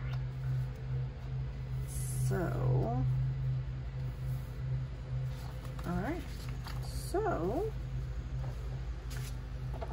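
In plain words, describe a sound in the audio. Paper rustles as sheets are moved by hand.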